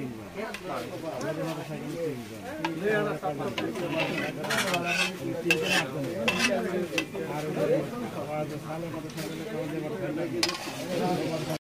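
Hot oil sizzles and bubbles softly.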